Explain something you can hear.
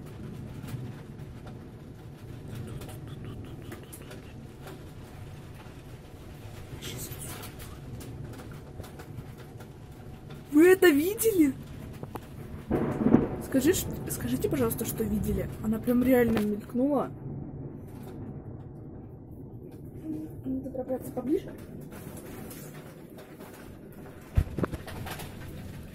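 Wind and heavy rain roar outside a window.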